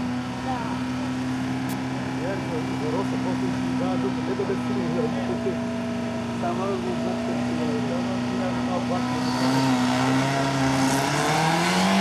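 A car engine idles with a steady, rough rumble.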